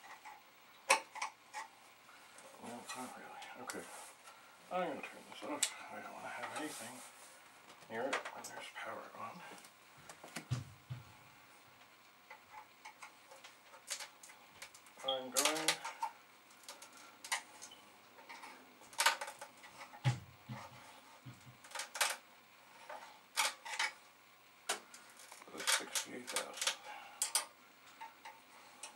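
A plastic computer case clicks and clatters as it is handled.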